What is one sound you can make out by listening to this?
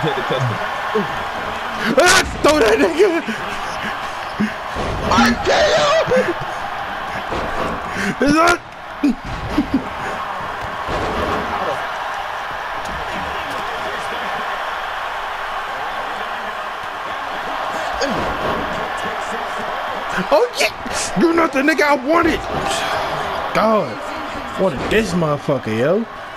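A large crowd cheers and roars steadily throughout.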